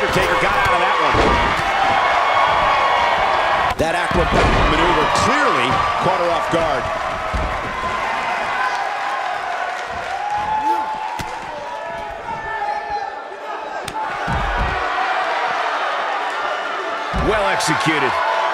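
Heavy bodies thud hard onto a mat and floor.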